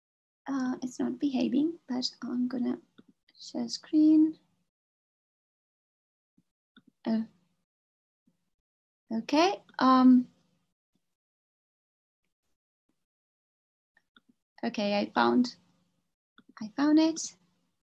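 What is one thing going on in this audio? A young woman speaks calmly through an online call, pausing between phrases.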